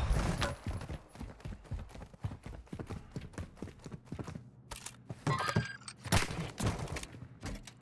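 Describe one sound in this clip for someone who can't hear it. Footsteps patter on hard floors.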